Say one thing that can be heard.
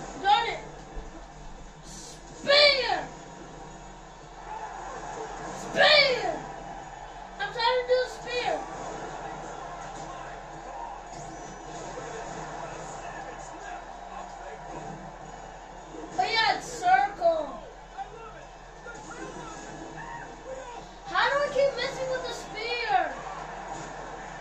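A wrestling video game plays through a television's speakers.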